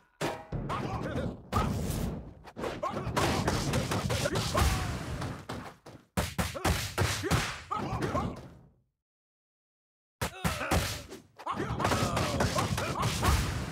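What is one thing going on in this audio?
Fire whooshes in a video game.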